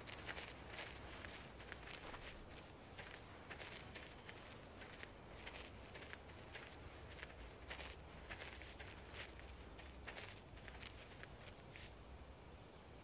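Footsteps crunch steadily on gravel and grass.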